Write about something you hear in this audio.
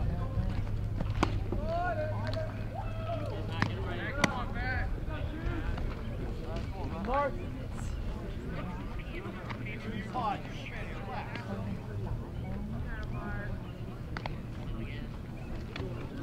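Young men call out and chatter across an open field.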